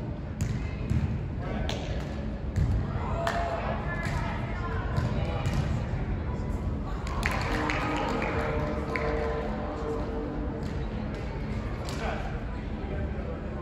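Young adults call out to each other from a distance in a large echoing hall.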